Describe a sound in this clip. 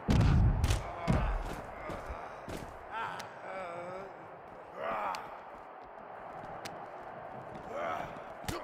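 Punches thud in a scuffle.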